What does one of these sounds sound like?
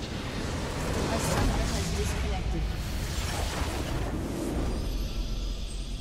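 A loud magical explosion booms and crackles.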